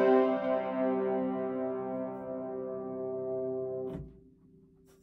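A piano chord rings out and slowly fades.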